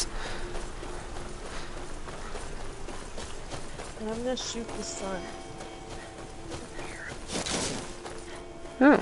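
Footsteps crunch softly on grass and dirt.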